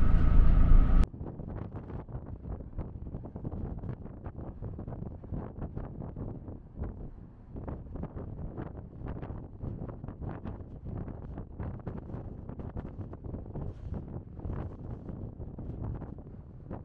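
Wind gusts and buffets the microphone outdoors.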